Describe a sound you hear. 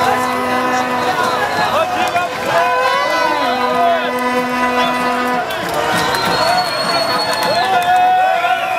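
A large crowd of men and women talks and shouts loudly outdoors.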